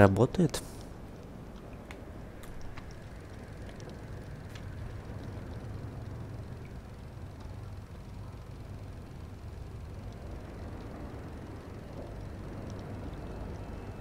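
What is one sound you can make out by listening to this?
A film projector whirs steadily.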